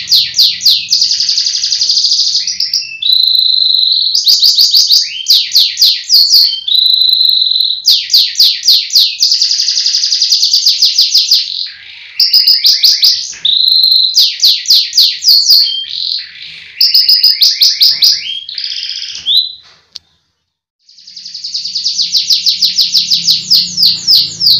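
A canary sings loudly in rapid trills and chirps.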